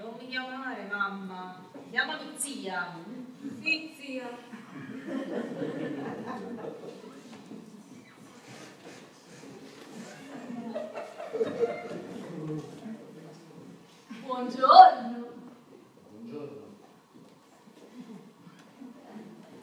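A woman speaks with animation on a stage in an echoing hall.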